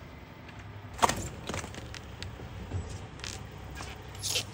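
A wooden frame knocks and clatters.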